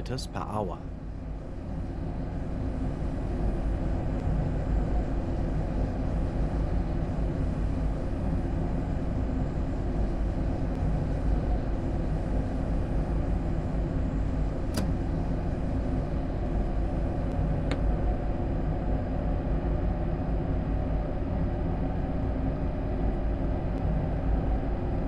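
A train engine hums and rumbles steadily from inside the cab.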